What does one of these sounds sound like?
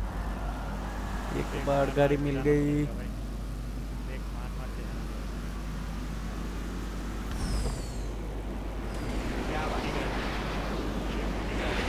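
A car engine hums as it drives.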